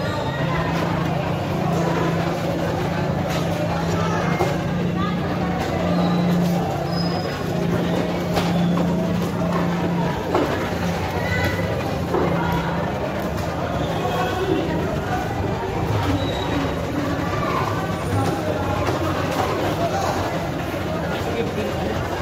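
A knife chops through fish on a wooden block with dull thuds.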